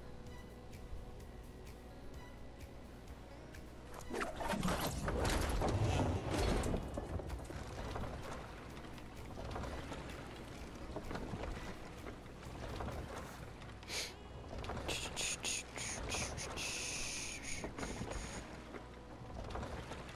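Wind rushes steadily past a glider in flight.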